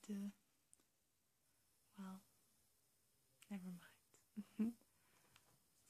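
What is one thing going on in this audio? A young woman whispers softly close by.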